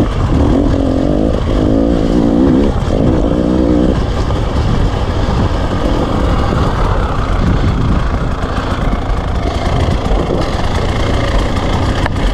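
Wind rushes loudly past.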